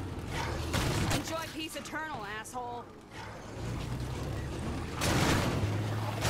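A truck crashes into bodies with heavy thuds.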